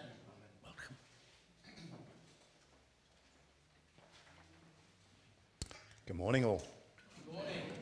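An elderly man speaks through a microphone in an echoing hall.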